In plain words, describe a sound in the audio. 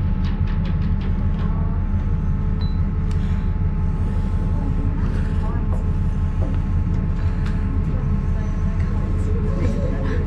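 A small diesel locomotive engine rumbles steadily nearby.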